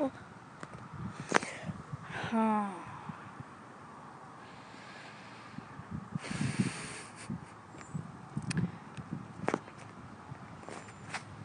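A young girl talks quietly close to a microphone.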